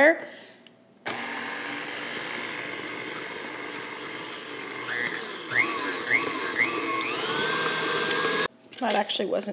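A stand mixer whirs steadily at speed.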